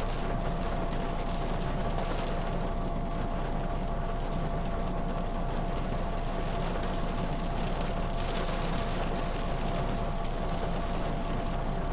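Windscreen wipers sweep back and forth.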